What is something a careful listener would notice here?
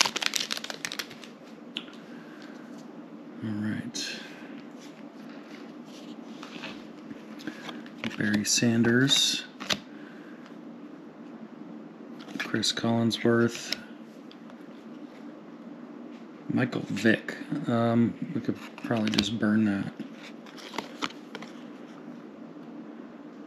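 Glossy trading cards slide against each other and rustle between fingers.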